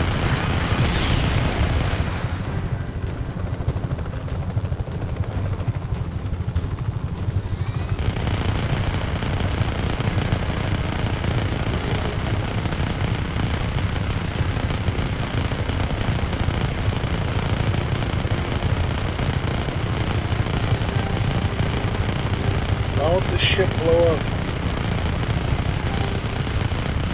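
Machine guns fire in rapid bursts.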